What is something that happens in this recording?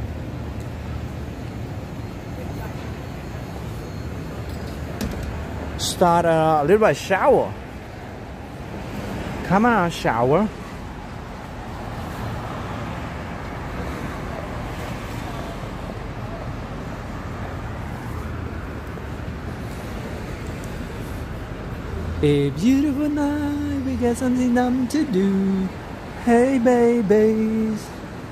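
City traffic hums steadily in the distance.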